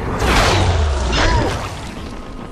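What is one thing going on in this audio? A blade slashes wetly into flesh.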